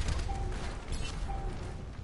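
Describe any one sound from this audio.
An energy gun fires a burst of rapid shots.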